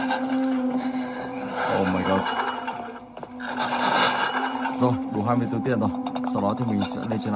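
Eerie game music drones from a tablet speaker.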